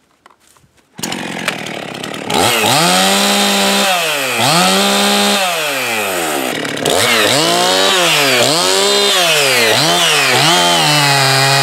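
A chainsaw engine roars to life and revs up and down loudly.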